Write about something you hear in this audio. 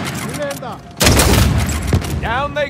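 A sniper rifle fires a loud, echoing shot.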